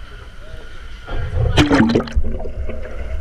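Water splashes at the surface of a pool.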